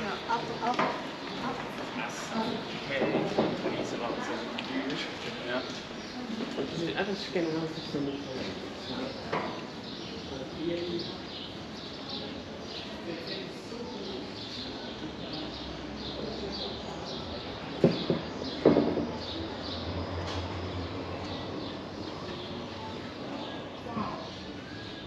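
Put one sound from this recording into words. Footsteps tap on cobblestones outdoors.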